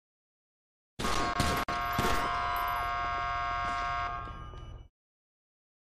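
Gunshots ring out sharply and echo.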